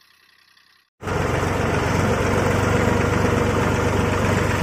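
A tractor engine rumbles loudly and steadily close by.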